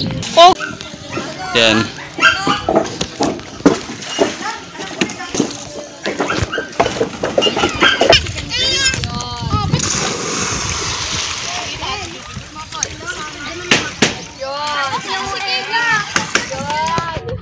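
Children shout and laugh excitedly nearby, outdoors.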